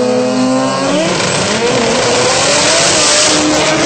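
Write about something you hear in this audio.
Two drag-racing cars launch at full throttle.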